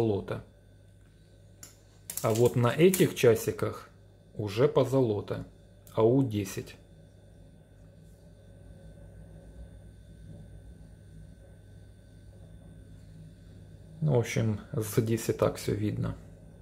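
A watch clicks softly as fingers handle it.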